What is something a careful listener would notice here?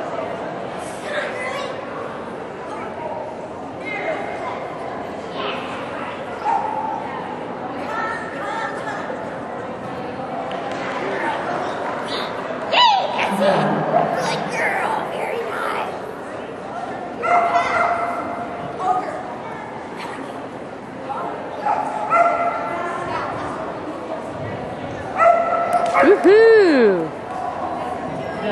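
A crowd murmurs in a large, open covered arena.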